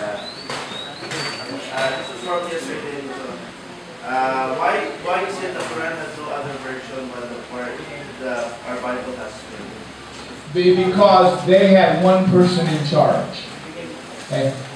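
A middle-aged man speaks into a microphone over a loudspeaker, growing louder and more emphatic at times.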